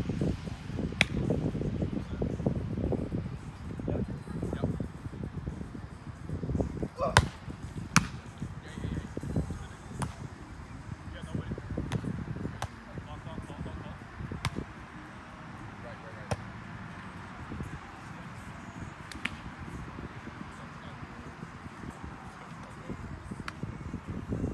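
Hands smack a volleyball with sharp thuds outdoors.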